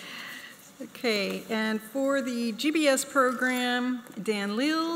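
A woman reads out names through a microphone in an echoing hall.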